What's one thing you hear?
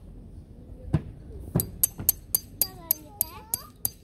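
A hammer taps a metal peg into the ground in quick, sharp strikes.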